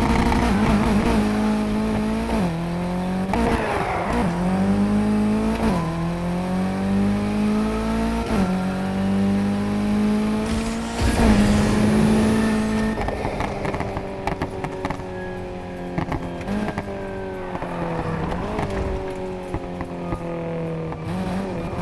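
Exhaust pops and crackles.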